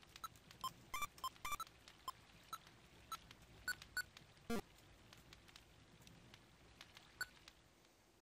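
Short, high electronic bleeps chirp in quick succession.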